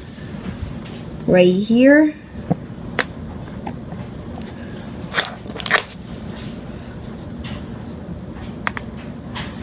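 Domino tiles click softly as they are stacked.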